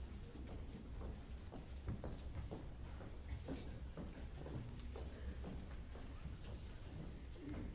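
Footsteps thud across a wooden stage.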